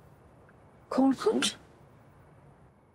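A young man speaks quietly in a car.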